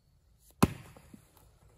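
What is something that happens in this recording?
An axe strikes a log with a sharp crack.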